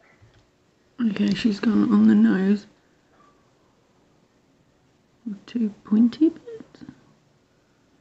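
A woman speaks calmly and close, through a microphone.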